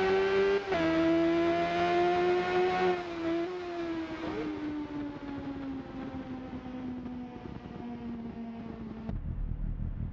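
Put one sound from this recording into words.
A motorcycle engine screams at high revs, then winds down as it slows.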